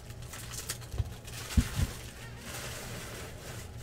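Plastic card wrappers crinkle and rustle in hands.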